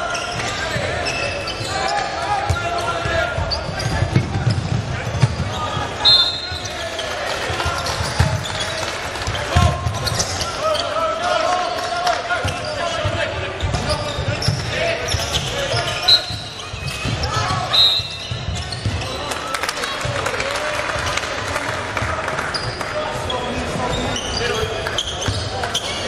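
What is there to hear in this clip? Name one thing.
Basketballs bounce on a hard court in a large echoing hall.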